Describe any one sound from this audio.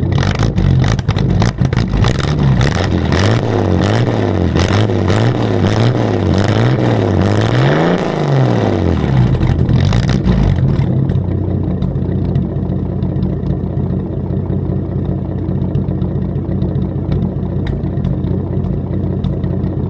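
An old car engine idles roughly close by, its speed rising and falling before settling into a steady rumble.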